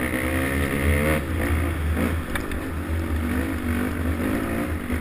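A motorbike engine revs and whines close by.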